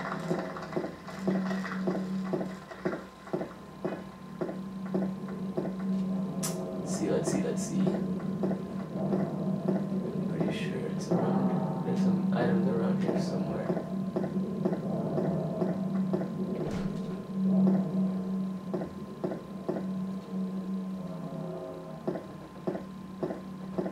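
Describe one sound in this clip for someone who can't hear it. Footsteps walk steadily along a hard surface.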